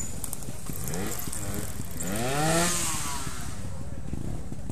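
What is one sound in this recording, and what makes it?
A dirt bike engine revs up nearby and fades.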